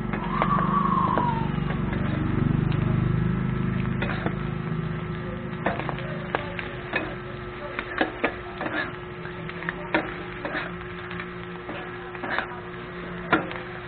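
Metal spatulas scrape and clack against a griddle.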